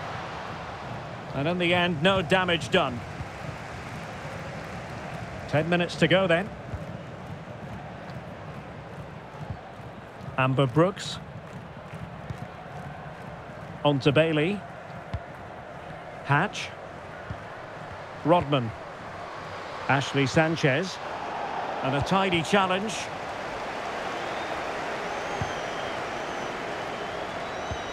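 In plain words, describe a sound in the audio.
A stadium crowd murmurs and cheers steadily in the distance.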